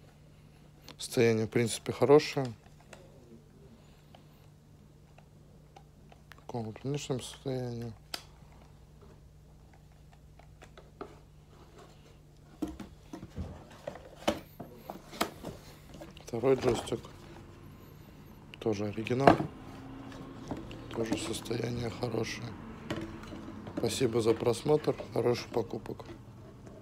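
A plastic game controller clicks and knocks softly as hands turn it over.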